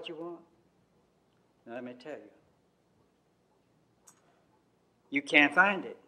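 An elderly man speaks slowly and deliberately into a microphone, with pauses between phrases.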